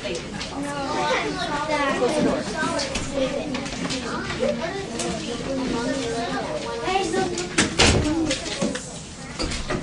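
A woman speaks loudly to a room of children, slightly echoing.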